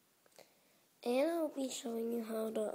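A short tune plays from a small device speaker.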